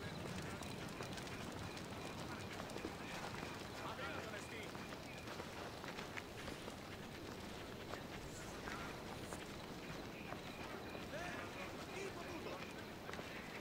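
Footsteps crunch steadily on a dirt path.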